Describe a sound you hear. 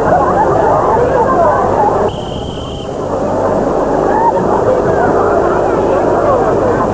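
A crowd of people chatters loudly outdoors.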